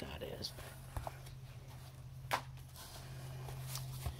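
Plastic bubble wrap rustles and crinkles as it is handled.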